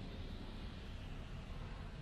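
A truck drives by.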